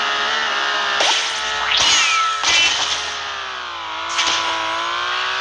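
Whooshing effects sweep past now and then.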